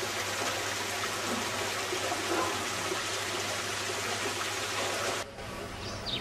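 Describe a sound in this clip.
Water splashes steadily down a small waterfall close by.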